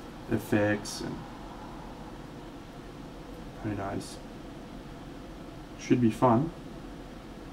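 A man speaks briefly in short bursts through a microphone.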